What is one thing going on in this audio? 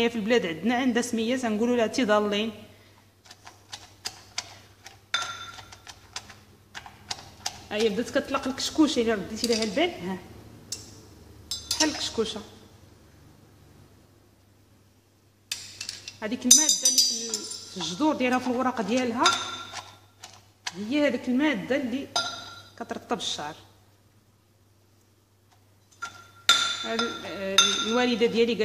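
A metal pestle knocks and grinds in a brass mortar.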